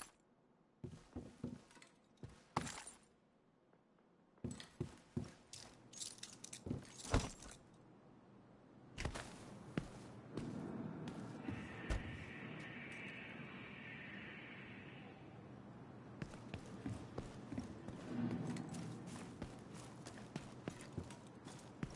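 Footsteps thud and scuff on a hard floor and then on pavement.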